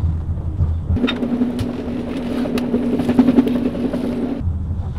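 A trolley rattles as it rolls along.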